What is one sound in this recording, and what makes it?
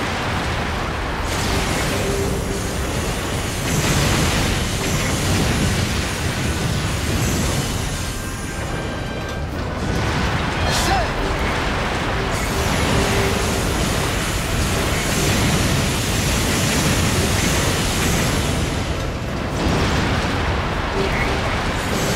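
Laser blasts and explosions boom and crackle nonstop.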